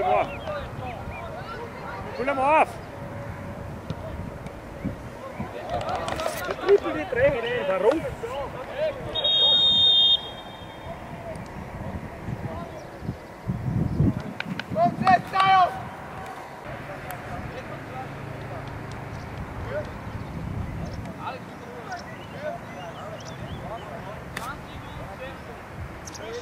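Teenage boys shout to each other across an open outdoor pitch.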